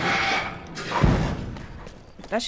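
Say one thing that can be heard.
A metal roller shutter slams shut with a heavy thud.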